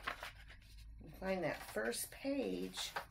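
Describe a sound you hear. A woman reads aloud calmly, close to a microphone.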